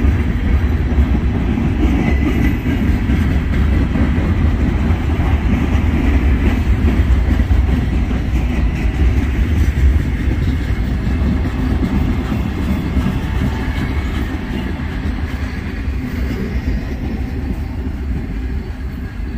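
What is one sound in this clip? A long freight train rumbles steadily past on the tracks.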